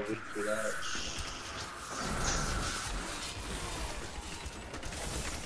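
Fire spells roar and crackle in a fight.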